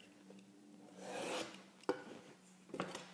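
A utility knife scores along a board with a scratchy rasp.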